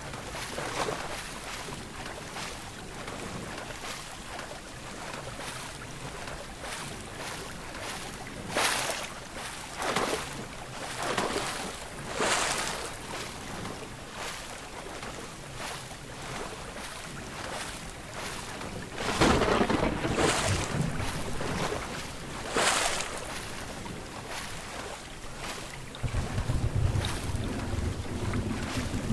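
Heavy rain pours onto water outdoors.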